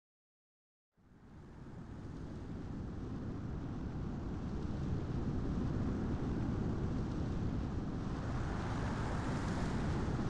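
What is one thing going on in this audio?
Wind blows steadily outdoors, slowly growing louder.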